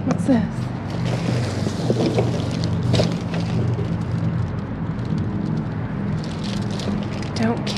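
Plastic bags rustle and crinkle as a hand rummages through them.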